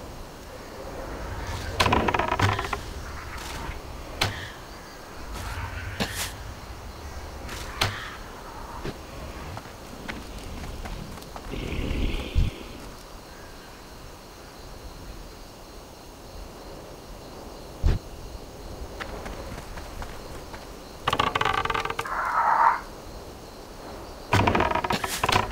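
A bow twangs as arrows are loosed in quick bursts.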